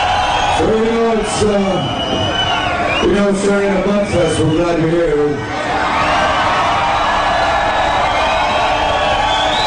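Drums pound steadily in a live band.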